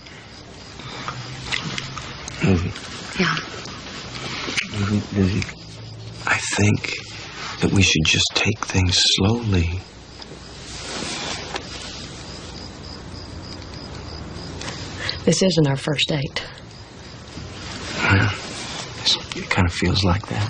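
A woman speaks softly close by.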